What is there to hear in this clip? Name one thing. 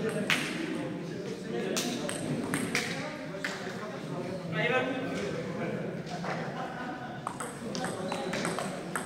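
People chatter quietly in the background.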